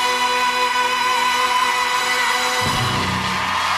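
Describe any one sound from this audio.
Music plays loudly and ends abruptly.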